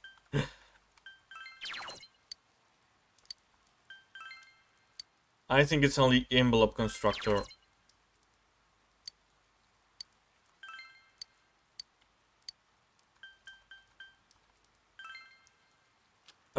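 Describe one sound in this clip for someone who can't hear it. A game menu beeps softly as choices are picked.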